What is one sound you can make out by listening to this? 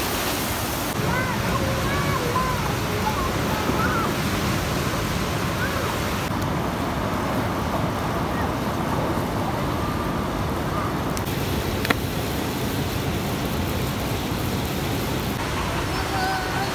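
A fast river rushes and roars nearby.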